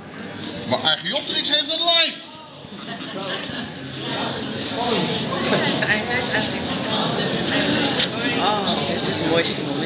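A sheet of paper rustles as it is peeled off a printing plate.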